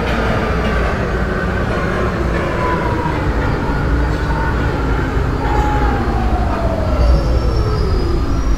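A train's electric motors whine, falling in pitch as the train slows down.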